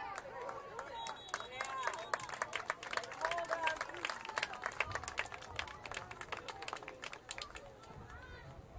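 A group of young men clap their hands rapidly.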